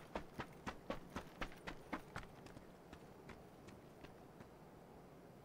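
Footsteps tread quickly over rocky ground, then slow and fade.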